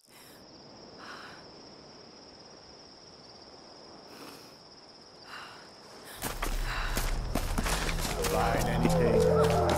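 Footsteps crunch over dry leaves and dirt.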